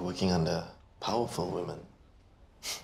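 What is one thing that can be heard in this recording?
A young man speaks casually up close.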